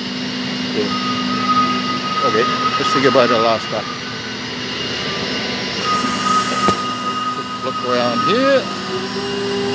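A man speaks close by in a casual way.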